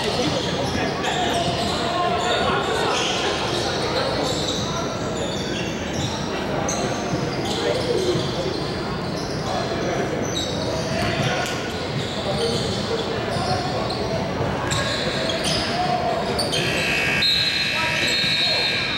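Sneakers squeak sharply on a hardwood court in a large echoing gym.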